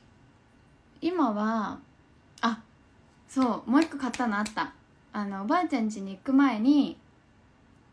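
A young woman talks animatedly into a nearby phone microphone.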